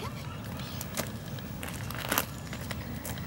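A dog's paws crunch on gravel as it trots.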